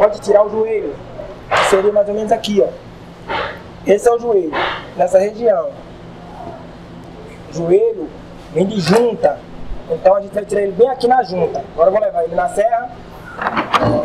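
A man speaks clearly and calmly into a clip-on microphone.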